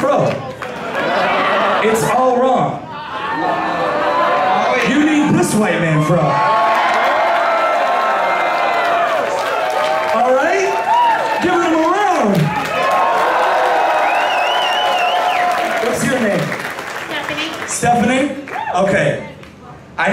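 A second man raps through a microphone over a loudspeaker.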